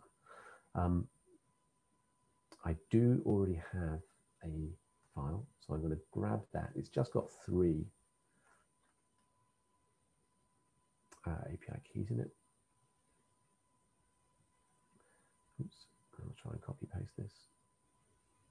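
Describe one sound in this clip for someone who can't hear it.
A man speaks calmly over an online call, in pauses.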